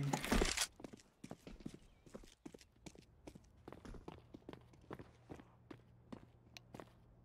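Footsteps tread steadily on a hard floor.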